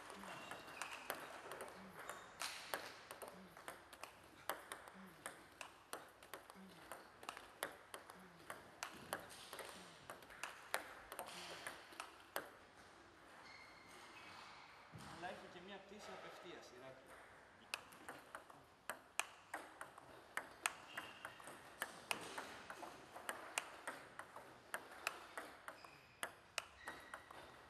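A ping-pong ball clicks rapidly back and forth off paddles and a table.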